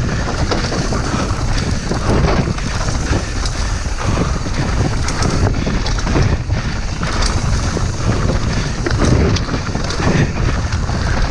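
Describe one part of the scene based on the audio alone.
Wind rushes steadily past, loud and close.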